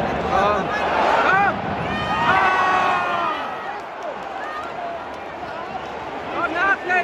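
A large stadium crowd chants and sings loudly.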